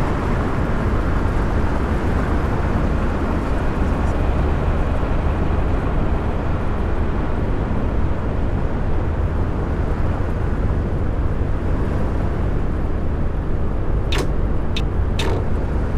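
A bus engine hums steadily with a low rumble while driving at speed.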